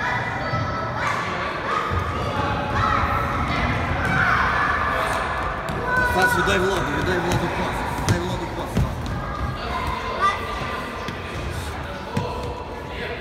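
A football thuds as it is kicked.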